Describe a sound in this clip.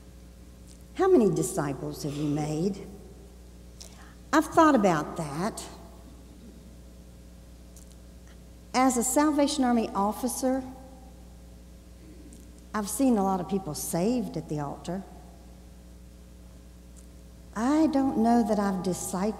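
An elderly woman speaks slowly into a microphone, with pauses, in a large echoing hall.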